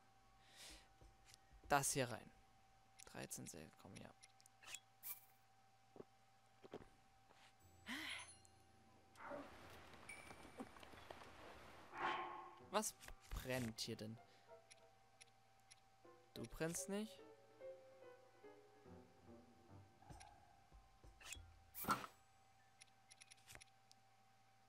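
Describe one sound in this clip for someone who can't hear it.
Short electronic clicks and chimes sound as menu items are selected.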